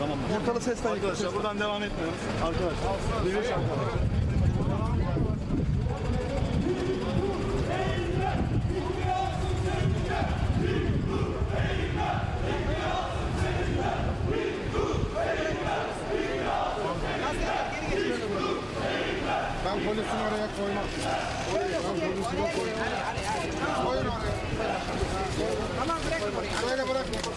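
A crowd of men talks and shouts outdoors close by.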